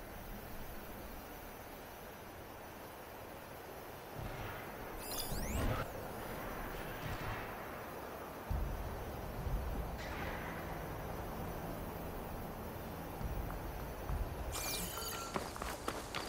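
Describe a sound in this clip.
Footsteps pad across grass and dirt.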